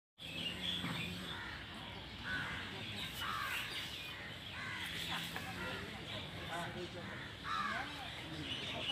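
A man murmurs quietly nearby.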